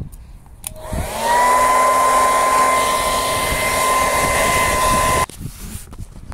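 A heat gun blows hot air with a loud, steady whine.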